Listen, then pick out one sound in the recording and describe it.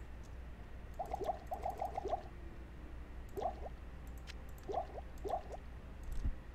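Short chiming tones sound as potions are traded.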